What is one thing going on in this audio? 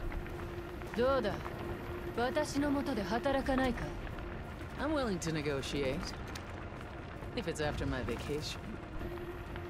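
A young woman speaks playfully.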